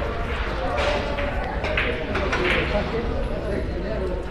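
Billiard balls click against each other on a table.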